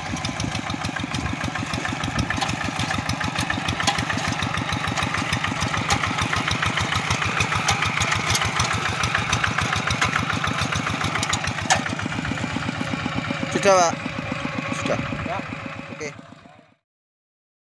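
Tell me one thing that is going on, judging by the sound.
A small diesel engine chugs loudly and steadily close by.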